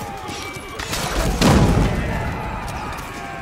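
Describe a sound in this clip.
A cannon blast booms with a deep rumble.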